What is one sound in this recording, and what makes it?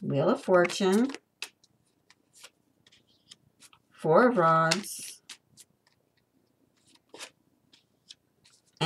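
A playing card slides and taps softly onto a table.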